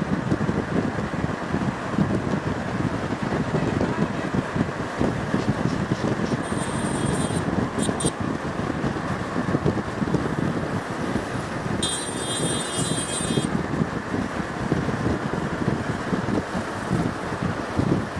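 Van engines hum as the vans drive along a road.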